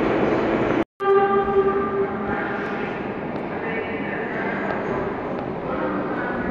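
A train rumbles and roars in the distance.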